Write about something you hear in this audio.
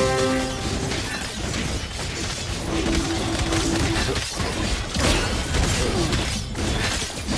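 Game battle effects clash and burst rapidly with magical zaps and hits.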